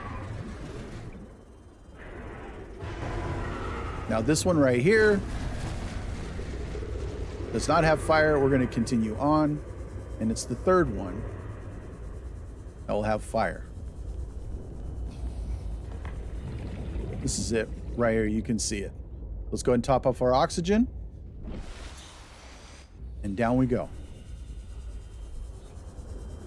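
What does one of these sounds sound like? A small submarine's motor hums low and steadily underwater.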